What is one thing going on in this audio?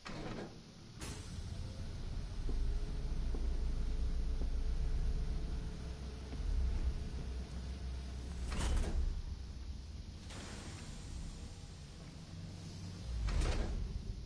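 A heavy metal door rumbles open.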